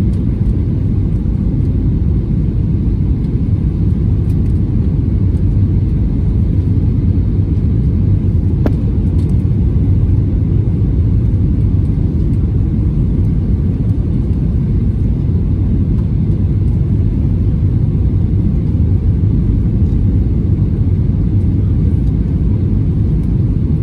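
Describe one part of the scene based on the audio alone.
A jet engine roars steadily, heard from inside a plane's cabin.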